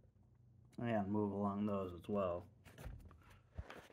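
A drawer rolls along a metal slide with faint clicks.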